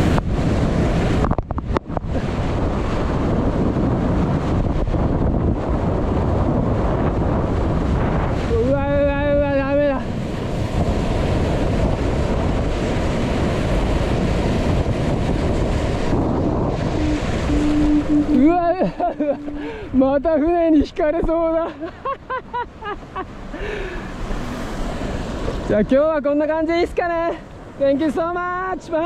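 Water rushes and splashes close by as a board cuts through waves.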